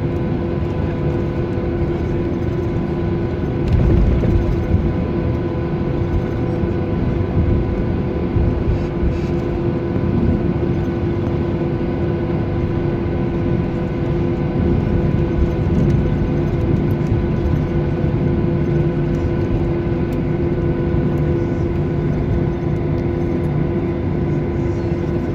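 Aircraft wheels rumble over the taxiway.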